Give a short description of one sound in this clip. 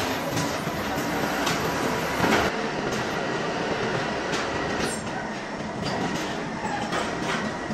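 Machinery hums and clanks steadily in a noisy workshop.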